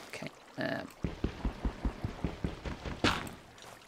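A game character gulps down a drink in quick, even swallows.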